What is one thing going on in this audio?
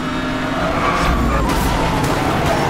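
Tyres skid over gravel.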